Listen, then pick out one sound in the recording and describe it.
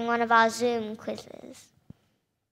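A young girl sings on a stage.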